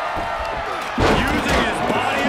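A heavy body slams down onto a wrestling mat with a loud thud.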